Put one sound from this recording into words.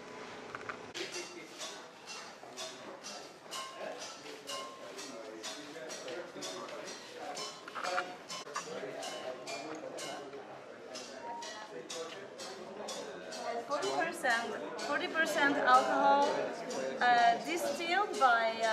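A crowd of young men and women chatter nearby.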